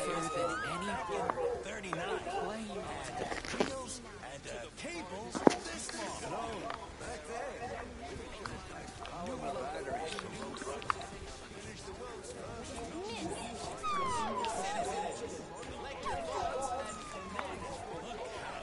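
A crowd of people chatters in a murmur outdoors.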